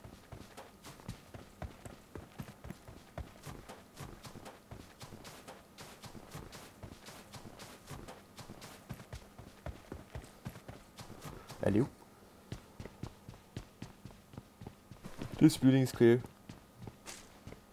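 Quick footsteps run steadily over the ground and then across a wooden floor.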